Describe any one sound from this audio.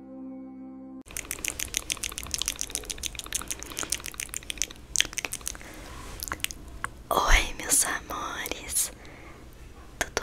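A woman speaks softly and closely into a microphone.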